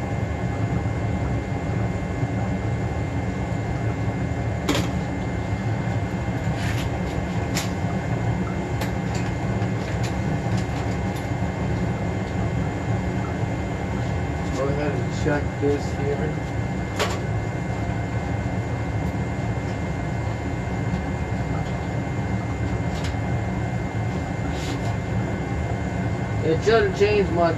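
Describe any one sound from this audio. A furnace blower hums steadily.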